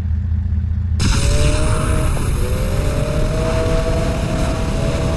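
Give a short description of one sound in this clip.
A motorbike engine roars and revs up as it speeds away.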